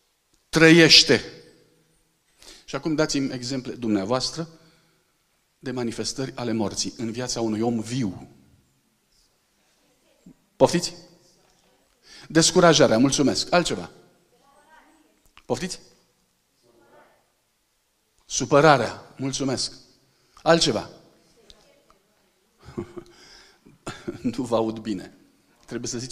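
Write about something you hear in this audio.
A middle-aged man speaks with animation into a microphone, heard through loudspeakers in a large hall.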